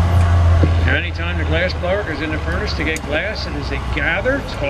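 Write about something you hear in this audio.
An older man speaks calmly through a microphone and loudspeaker, outdoors.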